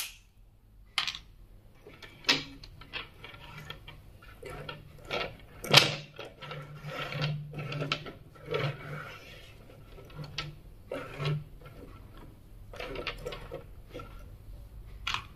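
Small wooden toys clack and knock together as they are moved about.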